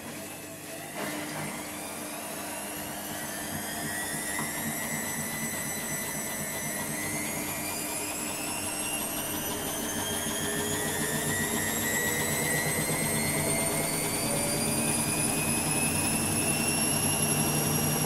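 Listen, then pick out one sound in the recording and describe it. A washing machine drum speeds up into a spin with a steadily rising whine.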